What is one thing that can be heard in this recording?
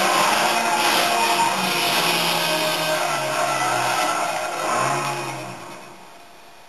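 A car engine roars loudly through a television speaker.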